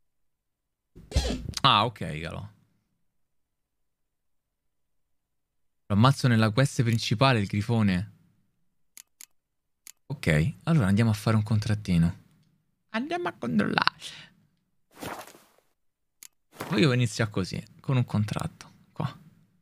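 A young man talks with animation into a close microphone, with pauses.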